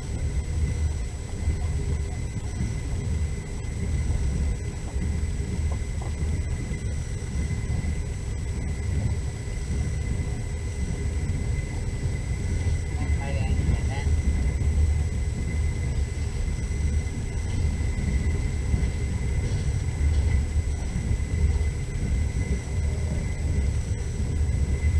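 Tyres rumble over packed snow.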